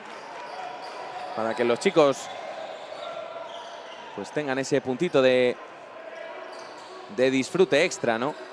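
A basketball is dribbled on a wooden court.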